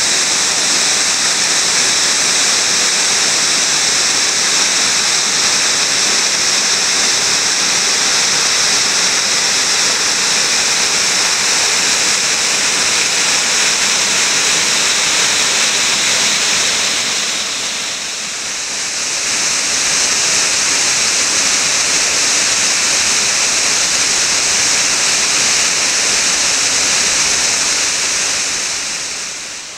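A waterfall roars steadily close by.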